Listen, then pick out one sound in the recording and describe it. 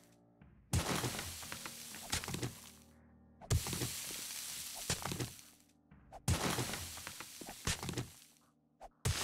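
A pickaxe strikes rock with sharp, crumbling impacts, over and over.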